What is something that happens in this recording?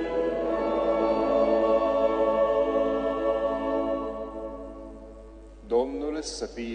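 An organ plays a sustained chord in a large echoing hall.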